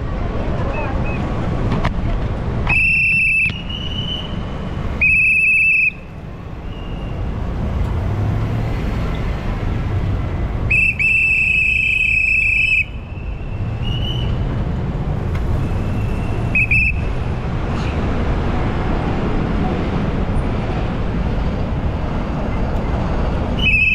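City traffic rumbles steadily as a vehicle drives along a busy street.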